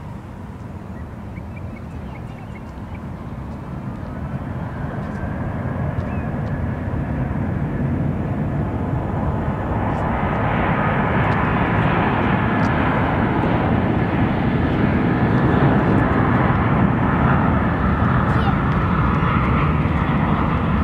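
Jet engines roar in the distance, growing steadily louder.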